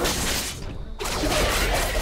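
A sword slashes with a sharp swish.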